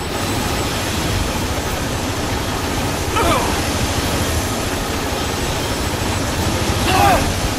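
Huge gears grind and rumble steadily.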